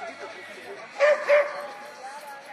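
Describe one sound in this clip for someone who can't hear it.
A woman handler shouts commands to a dog.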